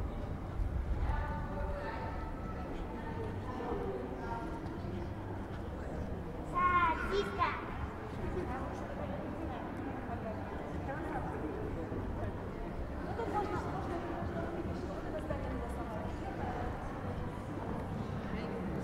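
Several people talk nearby in an open, echoing courtyard.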